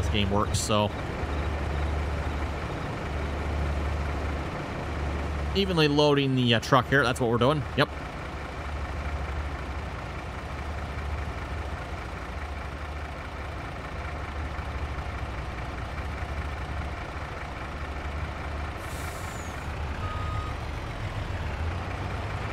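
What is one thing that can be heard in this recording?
A combine harvester engine rumbles steadily.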